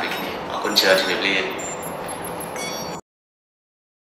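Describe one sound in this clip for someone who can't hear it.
A young man speaks cheerfully close by.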